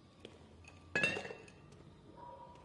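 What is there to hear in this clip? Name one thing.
A metal can clatters against a sink.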